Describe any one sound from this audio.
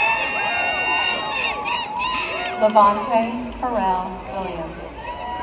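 A crowd cheers and whoops loudly outdoors.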